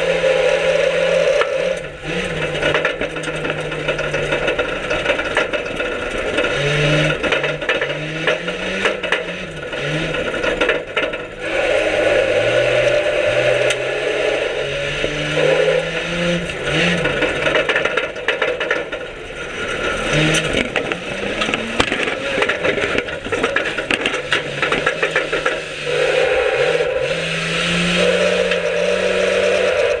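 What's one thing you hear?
A loud car engine roars and revs up and down close by.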